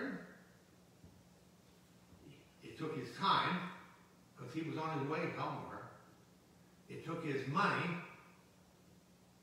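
An elderly man speaks calmly into a microphone in a quiet echoing room, pausing between phrases.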